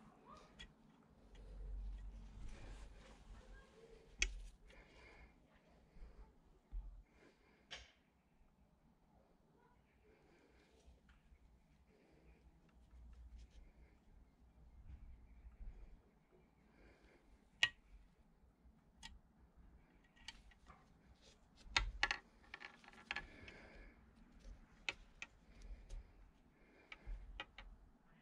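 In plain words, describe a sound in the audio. Liquid fizzes and bubbles steadily in a jar.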